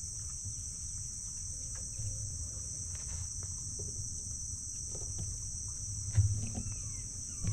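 Palm fronds rustle in the breeze.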